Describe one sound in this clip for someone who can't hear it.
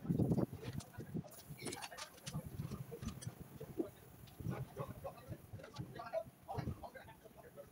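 Metal tools clink and knock against a metal tray.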